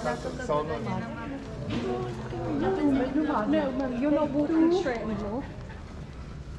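Young women talk and laugh close by.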